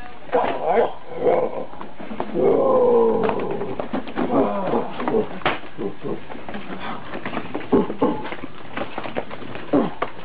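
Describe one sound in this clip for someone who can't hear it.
Cardboard toy boxes knock and thump together.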